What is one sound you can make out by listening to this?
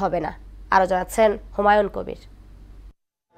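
A young woman reads out calmly through a microphone.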